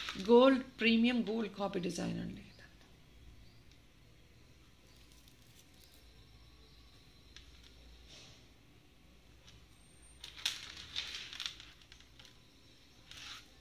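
Metal jewelry jingles softly as hands handle it.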